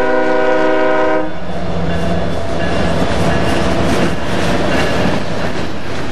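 Freight car wheels clatter on steel rails.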